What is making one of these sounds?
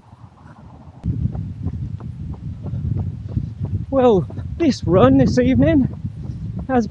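Footsteps thud steadily as a man runs.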